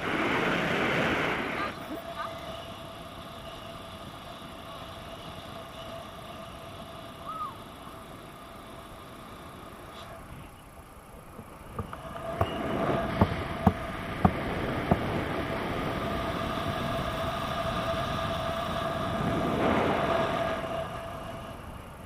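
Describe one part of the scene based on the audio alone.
Wind rushes past a microphone in strong gusts.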